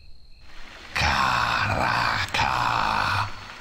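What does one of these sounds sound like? A magical spell crackles and whooshes loudly.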